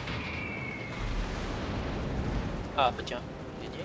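Heavy guns fire with deep booms.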